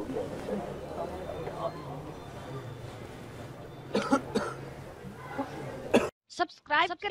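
A crowd of men murmurs nearby.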